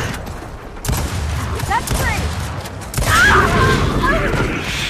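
Gunfire rattles in bursts, with loud blasts.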